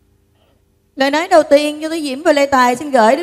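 A middle-aged woman sings loudly into a microphone through loudspeakers.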